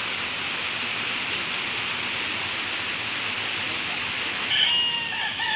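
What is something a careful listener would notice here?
Muddy water rushes loudly over a small weir.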